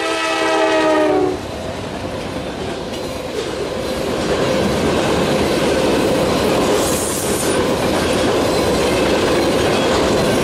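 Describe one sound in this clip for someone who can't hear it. Freight cars clatter and rumble steadily over the rails.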